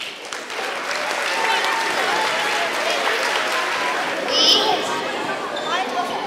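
Many children and adults chatter at once in a large echoing hall.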